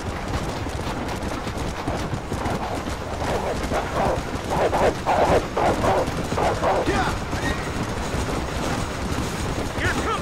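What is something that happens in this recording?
Horses gallop with rapid, thudding hoofbeats.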